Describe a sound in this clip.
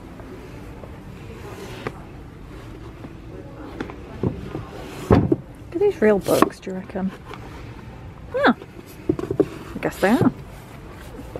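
A book slides and scrapes against others on a shelf.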